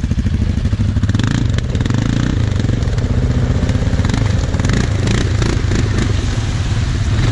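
A quad bike churns through deep mud and water, splashing.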